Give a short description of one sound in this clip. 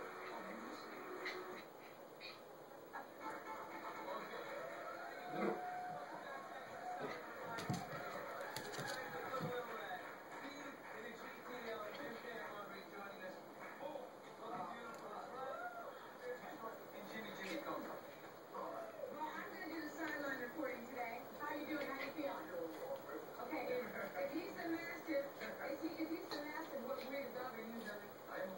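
A small dog grunts and growls playfully.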